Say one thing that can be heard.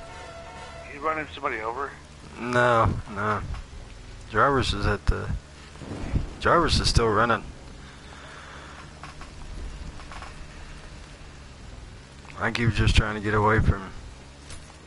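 A young man talks loudly and with animation into a microphone.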